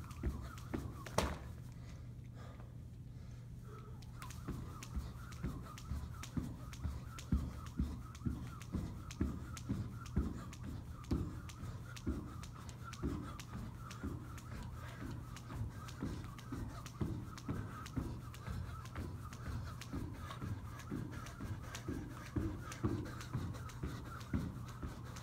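Feet thump lightly on the floor with each jump.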